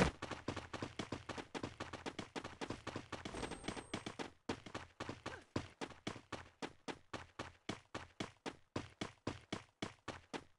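Footsteps thud quickly and steadily on the ground.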